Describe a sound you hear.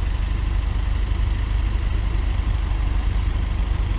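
A van drives across an intersection.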